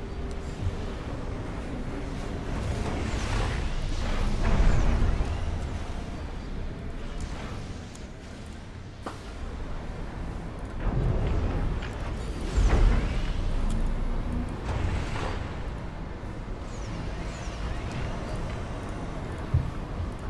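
Electronic laser beams zap and hum.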